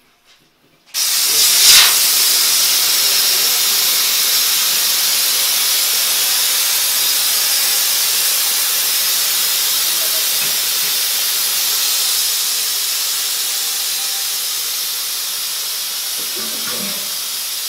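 Water bubbles and hisses loudly around a tank.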